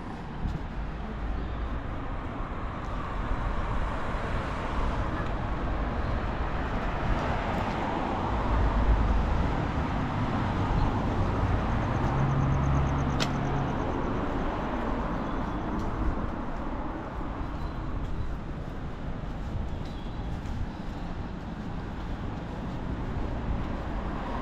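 Cars drive past on a nearby street with a steady rushing hum.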